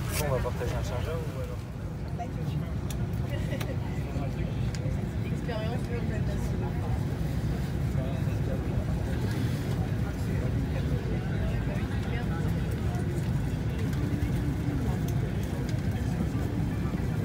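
Passengers murmur and chatter nearby.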